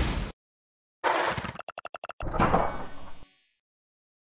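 A cheerful chime jingles.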